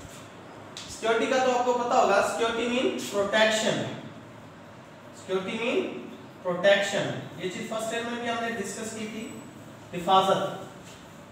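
A man speaks calmly in a lecturing tone, close by.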